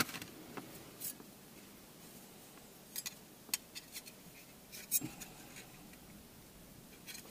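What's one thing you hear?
Small plastic parts click as hands handle them.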